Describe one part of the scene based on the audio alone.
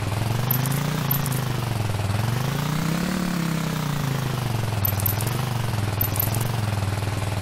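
Short bright chimes ring as coins are collected.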